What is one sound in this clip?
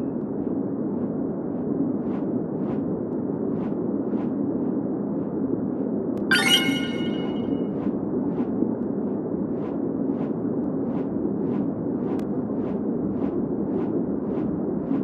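Wind rushes steadily.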